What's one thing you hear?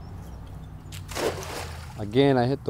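A cast net splashes into the water.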